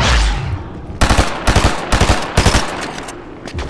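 Gunshots crack in a quick burst.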